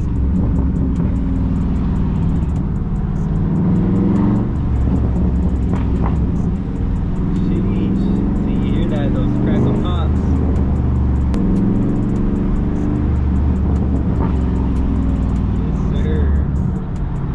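A car engine hums steadily while driving.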